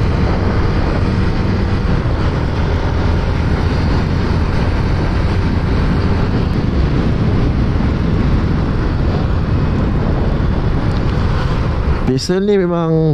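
Wind roars loudly past a moving motor scooter.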